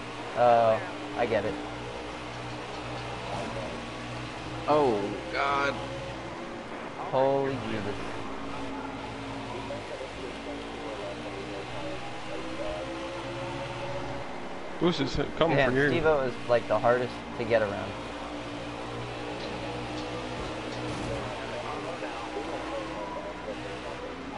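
Racing car engines roar steadily at high speed.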